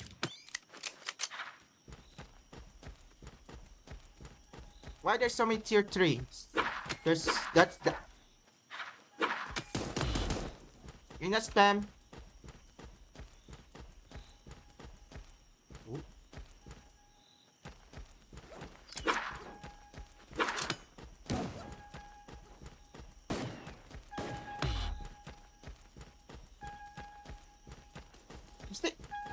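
Small gunshots pop quickly in a video game.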